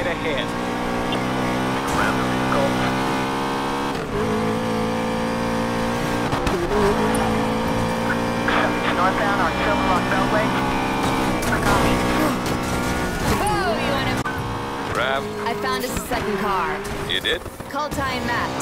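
A powerful car engine roars steadily at high speed.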